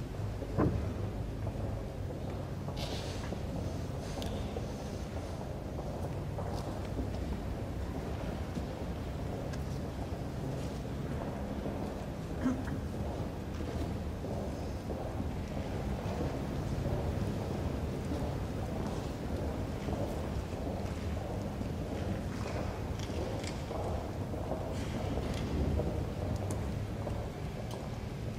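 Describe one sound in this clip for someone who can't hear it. Many footsteps shuffle slowly across a stone floor in a large echoing hall.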